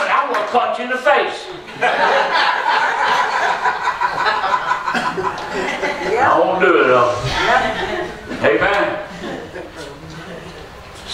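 An older man preaches with animation, heard through a microphone in an echoing hall.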